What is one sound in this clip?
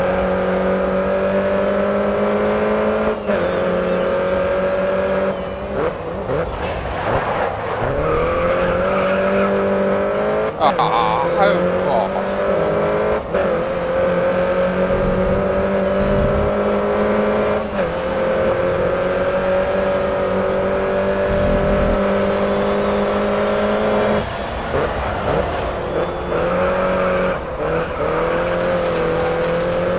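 A small car's engine revs hard and whines through its gears.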